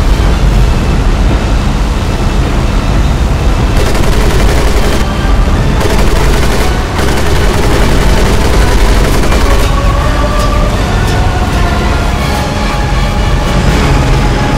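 A propeller plane engine drones loudly and steadily.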